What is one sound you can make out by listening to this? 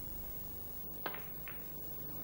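A snooker ball clicks sharply against another ball.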